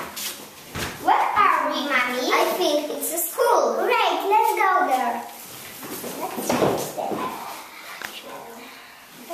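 Young girls talk with animation close by.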